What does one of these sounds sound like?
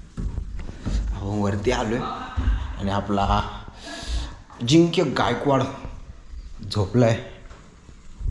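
A young man talks animatedly close to the microphone.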